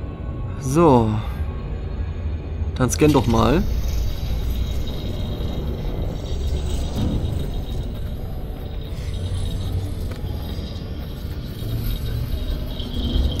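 A spaceship's engine hums low and steady.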